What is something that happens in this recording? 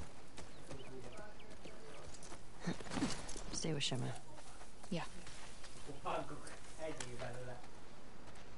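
A young woman calls out nearby.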